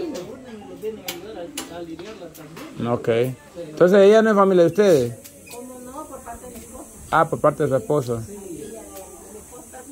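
A young woman speaks to a small group nearby.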